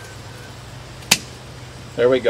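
Pruning shears snip through a thick stem with a sharp click.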